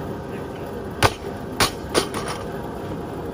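A loaded barbell crashes onto rubber mats and bounces.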